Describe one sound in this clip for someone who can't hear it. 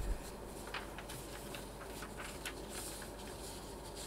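Paper sheets rustle.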